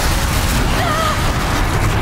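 A fiery explosion booms and roars.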